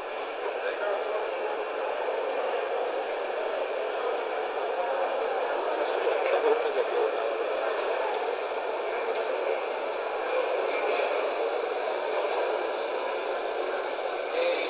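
Many people murmur in a large hall.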